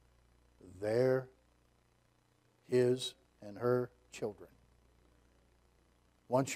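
A middle-aged man speaks slowly and with emphasis through a microphone.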